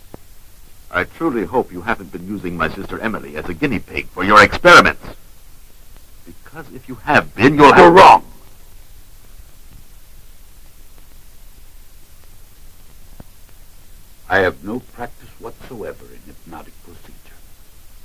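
A man speaks, heard through an old film soundtrack.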